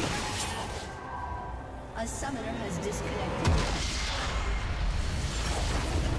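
Game spell effects crash and whoosh in a battle.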